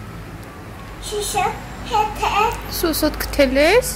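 A toddler babbles and squeals in a high voice close by.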